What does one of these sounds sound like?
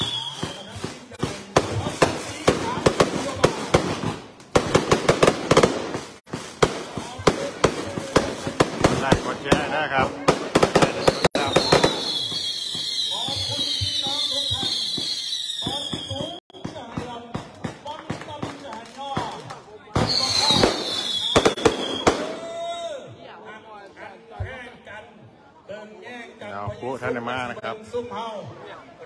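Fireworks pop and bang in rapid bursts outdoors.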